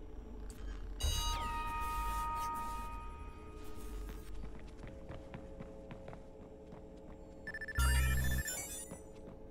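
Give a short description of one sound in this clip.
A video game chime rings out with a bright, ringing tone.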